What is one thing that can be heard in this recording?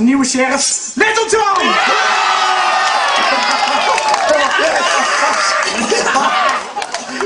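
A crowd of men, women and children cheers and shouts loudly.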